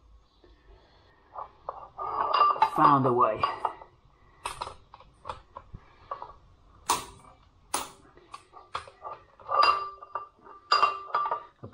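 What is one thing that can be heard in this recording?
A wrench clanks and clicks against metal bolts.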